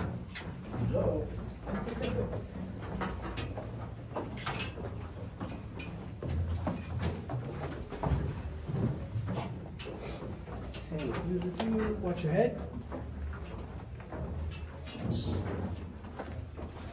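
Footsteps clatter on metal stairs.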